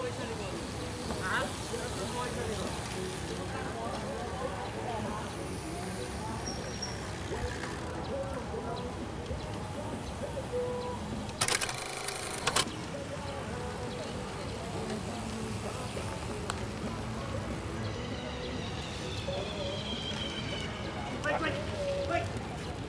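Bicycle tyres hiss on pavement as a group of cyclists rides past.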